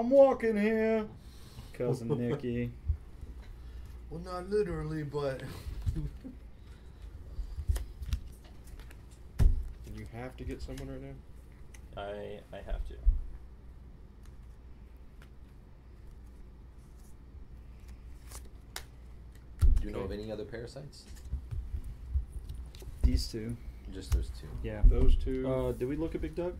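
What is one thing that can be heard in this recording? Playing cards slap and tap onto a table.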